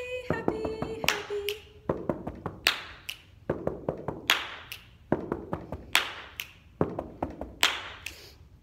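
Feet stomp on a floor in rhythm with the claps.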